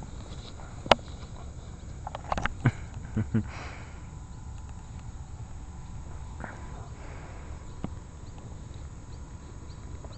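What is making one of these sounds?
A dog rolls and rustles in the grass.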